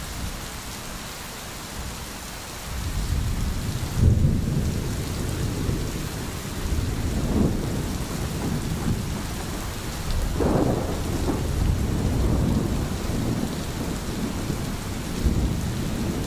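A stream babbles and gurgles over stones.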